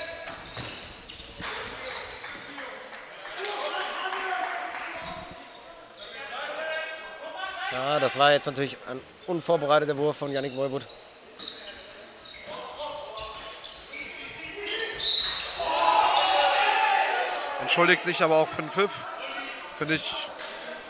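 Spectators cheer and shout in a large echoing hall.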